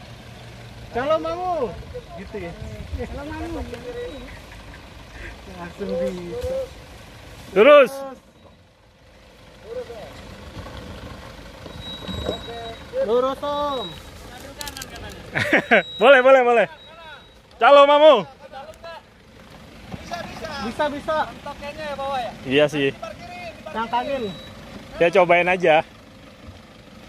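A truck engine idles and revs as it climbs over rough ground.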